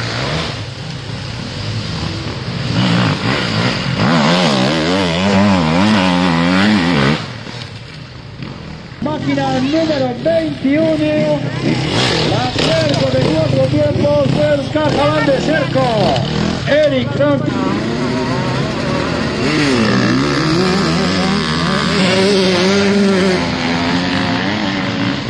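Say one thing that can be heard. A dirt bike engine revs up and down.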